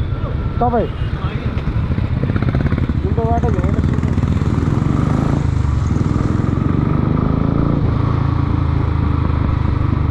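Traffic rumbles past on a busy road.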